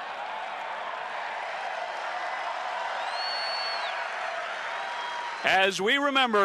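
A large crowd murmurs and cheers in an open stadium.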